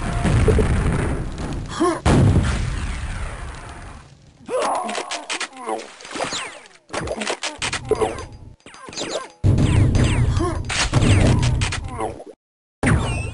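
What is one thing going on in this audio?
Rockets fire and explode with loud booms.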